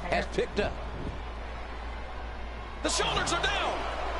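A body slams hard onto a wrestling mat with a thud.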